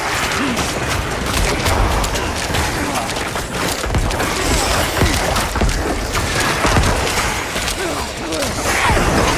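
Blows thud and clatter against monsters over and over.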